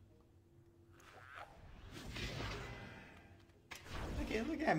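A magic spell swells with a rising, shimmering whoosh.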